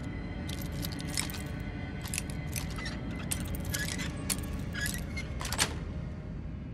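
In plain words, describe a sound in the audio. Metal picks click and scrape inside a lock.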